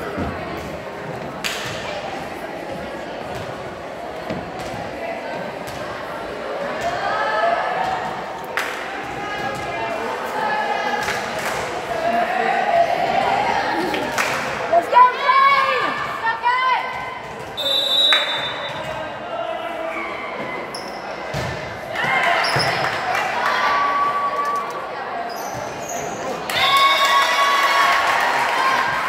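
Voices of players and spectators chatter and call out in a large echoing gym.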